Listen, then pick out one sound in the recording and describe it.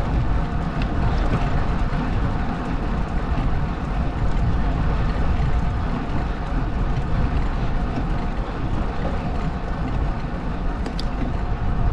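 Wind buffets the microphone steadily outdoors.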